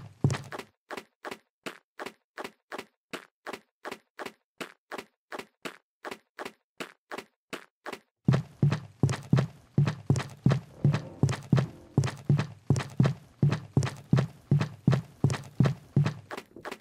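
Quick footsteps patter steadily, growing louder and heavier partway through.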